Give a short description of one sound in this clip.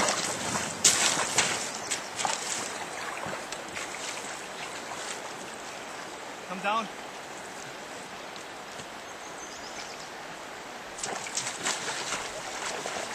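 A shallow river rushes over stones.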